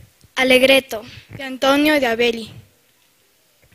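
A young girl speaks with animation through a microphone.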